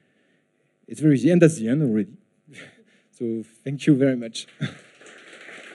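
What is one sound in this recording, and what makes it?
A young man speaks calmly into a microphone, heard through loudspeakers in a large room.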